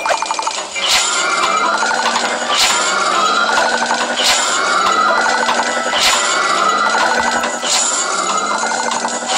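Cartoon vehicles whoosh past in a repeating pattern.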